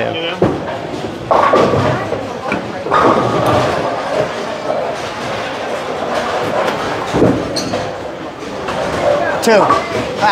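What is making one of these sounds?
A bowling ball rolls down a lane and crashes into pins.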